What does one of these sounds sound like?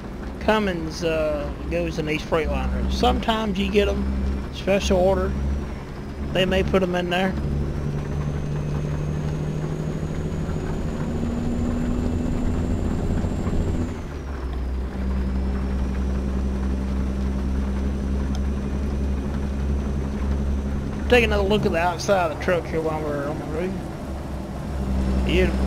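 A truck engine drones steadily as the truck drives.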